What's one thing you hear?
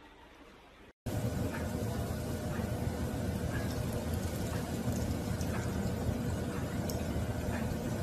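A cat laps water from a metal bowl.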